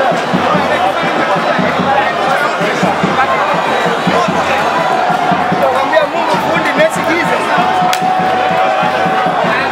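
A large crowd cheers, chants and whistles outdoors.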